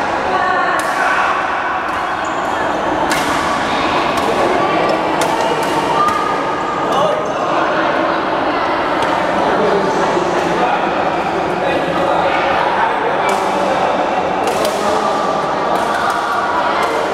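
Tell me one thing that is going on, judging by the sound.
Rackets strike shuttlecocks with sharp pops in a large echoing hall.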